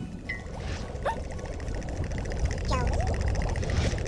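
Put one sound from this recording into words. A cartoon ant squeaks in short, high, gliding chirps.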